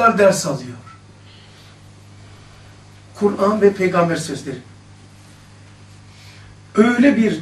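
An older man speaks calmly into a close microphone, in short phrases with pauses.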